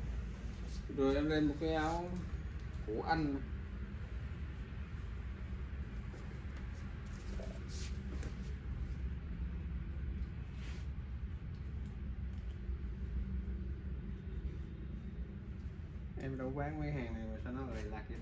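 A middle-aged man speaks close by.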